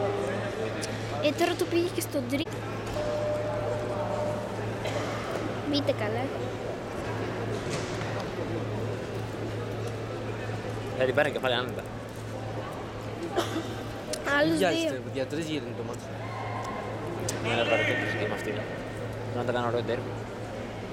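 Adult men and women call out and cheer from a distance in a large echoing hall.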